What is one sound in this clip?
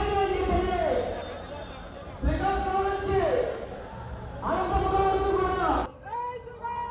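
A crowd chatters and shouts outdoors.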